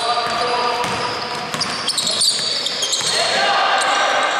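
A basketball bounces on the floor as a player dribbles.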